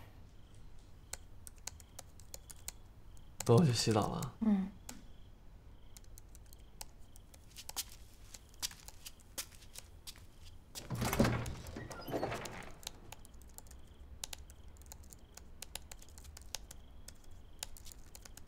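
Fingers tap quickly on a laptop keyboard.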